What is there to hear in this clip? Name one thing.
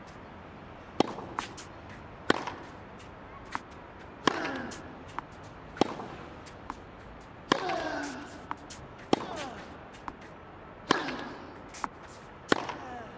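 A tennis ball is struck back and forth with sharp pops of a racket.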